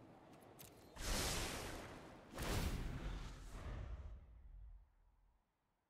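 A digital card game plays a loud whooshing effect.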